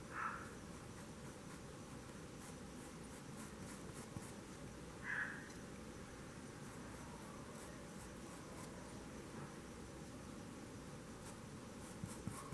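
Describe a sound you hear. A paintbrush softly strokes across canvas.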